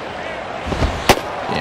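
A baseball smacks sharply into a catcher's mitt.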